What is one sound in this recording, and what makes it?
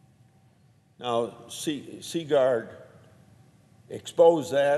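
An elderly man speaks steadily into a microphone.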